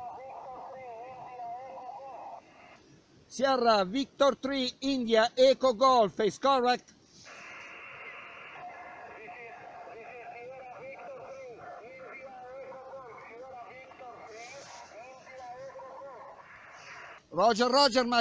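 Faint voices and static come through a small radio loudspeaker.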